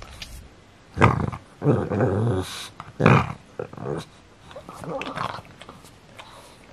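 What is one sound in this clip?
A young man talks playfully and close by.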